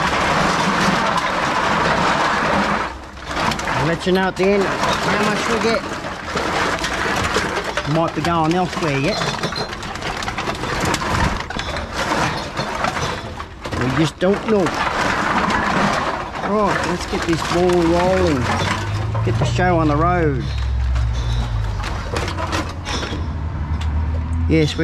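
Cans and bottles clatter and clink together.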